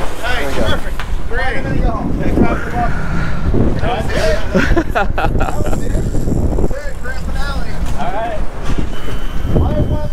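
Men talk and call out excitedly close by.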